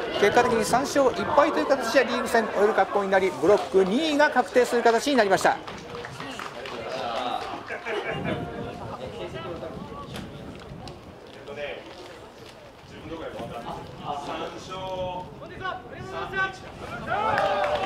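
A crowd of young men shouts and cheers outdoors at a distance.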